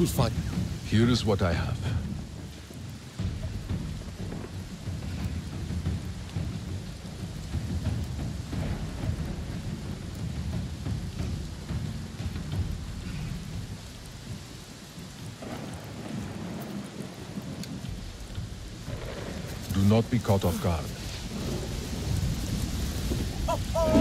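Wind blows steadily through grass.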